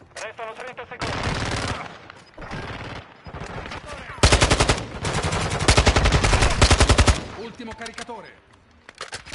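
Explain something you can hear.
A young man talks with animation into a microphone close by.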